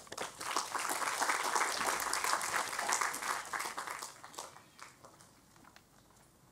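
An audience applauds in a large hall, then the applause dies away.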